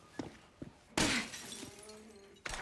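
Glass shatters with a sharp crash.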